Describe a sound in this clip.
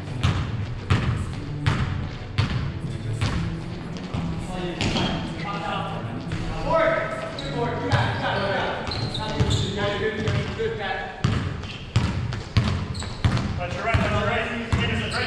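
A basketball bounces on a hard court with an echo in a large hall.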